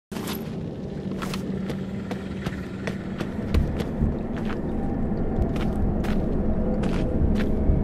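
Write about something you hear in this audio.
Footsteps crunch on rocky ground in an echoing cave.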